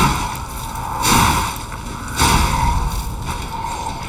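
Electricity crackles and fizzes briefly.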